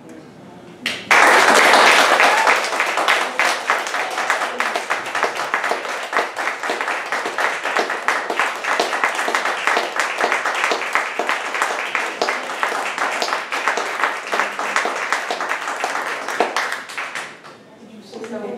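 An audience applauds loudly in an echoing room.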